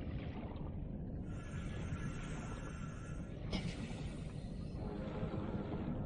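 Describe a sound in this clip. Water rumbles and murmurs steadily all around, as if heard underwater.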